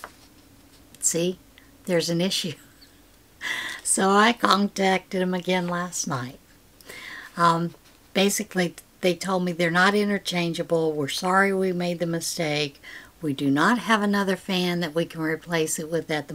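An older woman talks cheerfully and close to the microphone.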